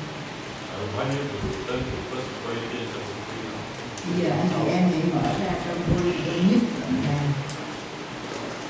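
A man speaks into a microphone, heard through loudspeakers in an echoing hall.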